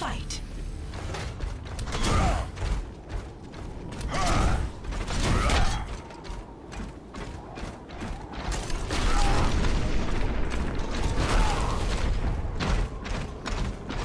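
A weapon fires in rapid bursts of sharp shots.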